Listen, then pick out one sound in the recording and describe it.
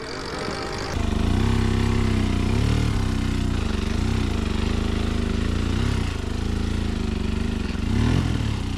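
A motorcycle engine idles and revs steadily close by.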